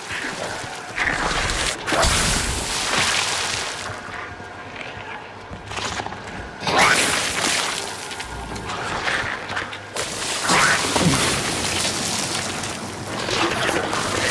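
Footsteps walk across a hard tiled floor.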